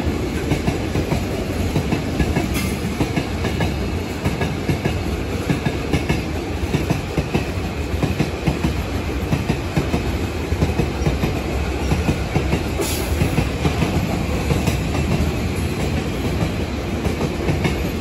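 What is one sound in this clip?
Wheels clatter rhythmically over rail joints.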